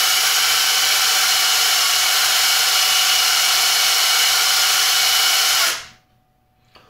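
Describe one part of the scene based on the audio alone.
A cordless drill whirs loudly at high speed.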